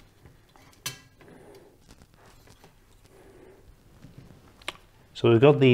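A plastic fan clicks and rustles against a metal case.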